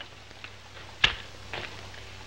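A heavy metal safe door slams shut.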